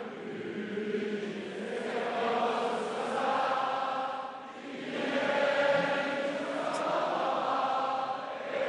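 A middle-aged man speaks steadily and formally into a microphone.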